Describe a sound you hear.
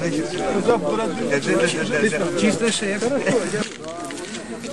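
Elderly men talk and laugh together close by.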